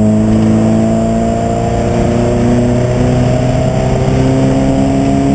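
A race car engine roars loudly from inside the cabin, holding a steady high pitch.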